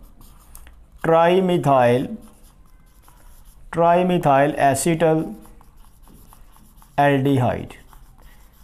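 A man speaks clearly and slowly, close by.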